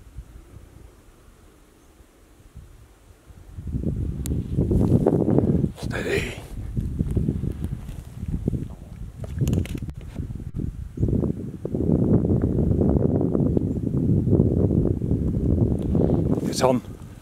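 A dog sniffs and snuffles through the grass.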